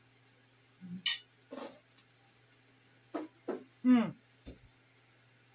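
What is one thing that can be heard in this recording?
A woman chews food with soft smacking sounds.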